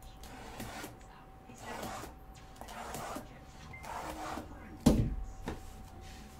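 Cardboard boxes scrape and knock together as they are handled.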